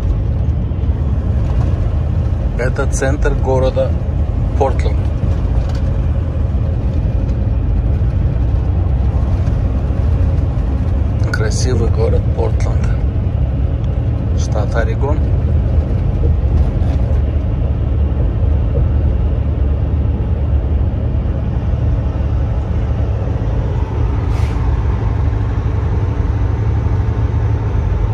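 A vehicle's engine rumbles low and steady as it drives along a highway.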